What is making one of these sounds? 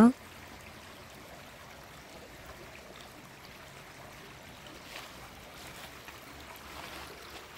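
A shallow stream trickles over stones.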